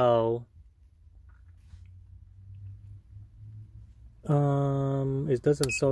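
A multimeter's rotary dial clicks as it turns.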